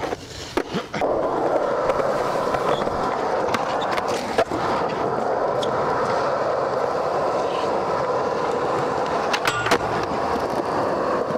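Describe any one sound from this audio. Skateboard wheels roll steadily over concrete.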